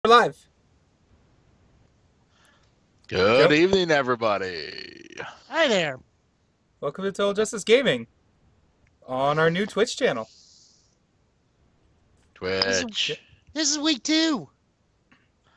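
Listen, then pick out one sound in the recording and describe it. Men talk and laugh with animation over an online call.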